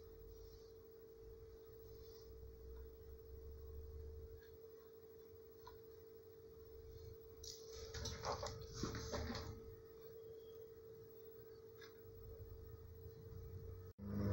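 Hands handle and set down a metal box with light knocks.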